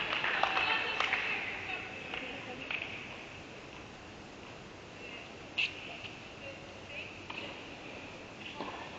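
Tennis balls are struck with rackets in a large echoing hall.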